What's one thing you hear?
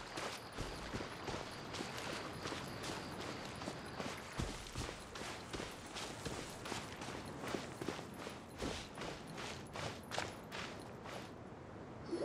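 Quick footsteps run steadily over the ground.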